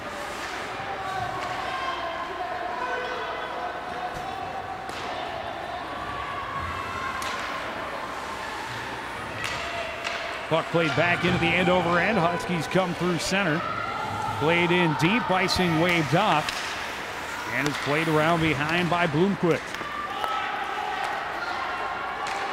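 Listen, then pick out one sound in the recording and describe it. A crowd murmurs in a large echoing rink.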